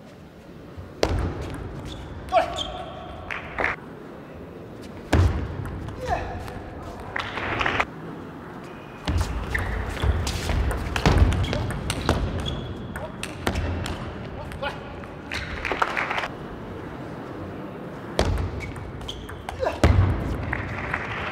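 A table tennis ball clicks back and forth on paddles and table.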